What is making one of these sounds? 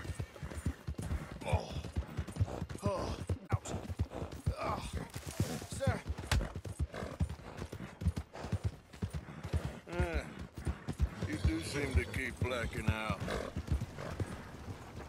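A horse gallops, its hooves thudding quickly on the ground.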